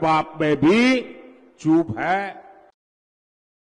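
An elderly man speaks forcefully into a microphone over loudspeakers.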